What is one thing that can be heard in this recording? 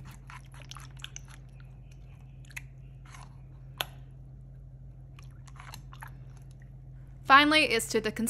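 A spoon squishes and clicks through thick slime in a bowl.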